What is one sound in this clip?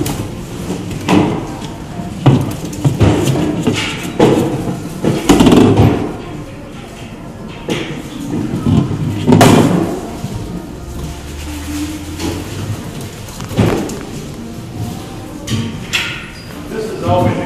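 A plastic ball thumps and rolls across a hard floor.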